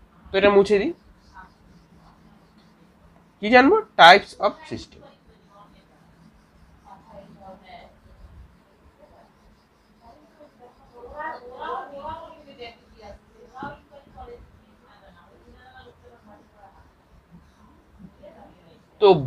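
A felt eraser rubs across a whiteboard.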